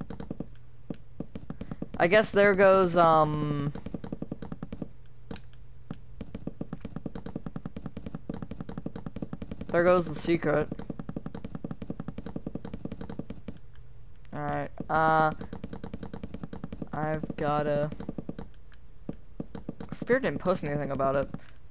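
Wooden blocks are placed with quick soft taps.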